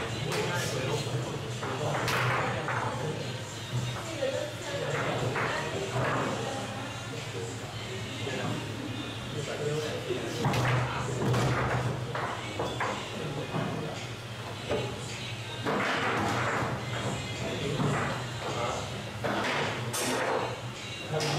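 Foosball rods rattle and clack as players slide and spin them.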